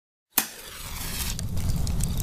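A match strikes and flares with a hiss.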